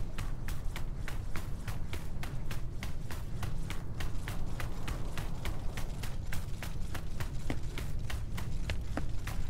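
Quick footsteps run over gravelly ground.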